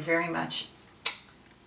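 A woman speaks close to a microphone.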